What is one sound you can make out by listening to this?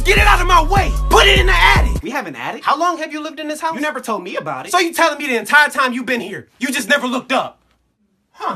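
A young man sings with feeling close to the microphone.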